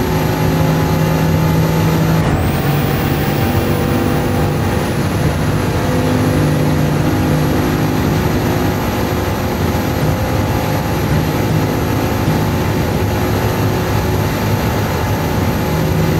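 A hypercar engine drones at full throttle at top speed in a racing video game.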